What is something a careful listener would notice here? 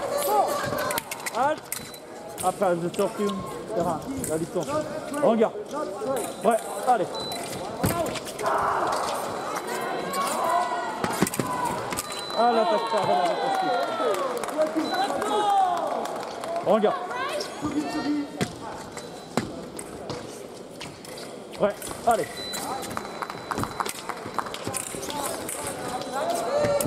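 Blades clash and click sharply as two fencers duel.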